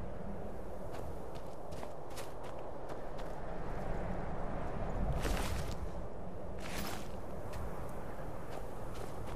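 Footsteps crunch on gravel and snow.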